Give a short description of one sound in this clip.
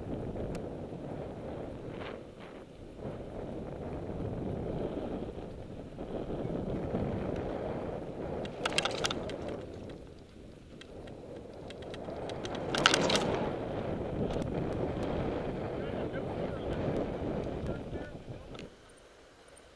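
Wind rushes against the microphone while riding outdoors.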